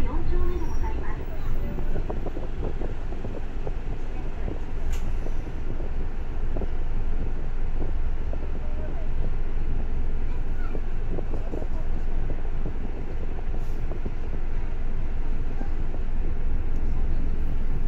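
A bus engine rumbles steadily, heard from inside the bus.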